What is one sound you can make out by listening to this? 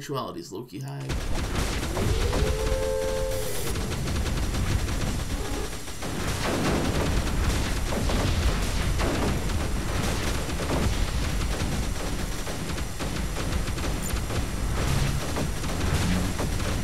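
Blasts and gunfire from a game rumble steadily.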